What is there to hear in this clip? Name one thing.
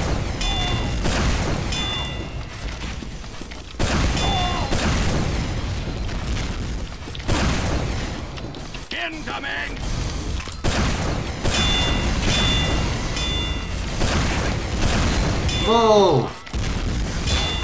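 A rocket launcher fires with a hollow thump.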